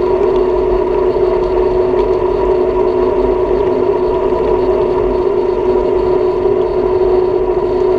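A motor whines steadily at an even pitch.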